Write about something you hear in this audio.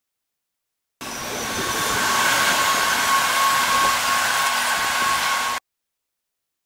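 Train wheels screech high and steady against the rails.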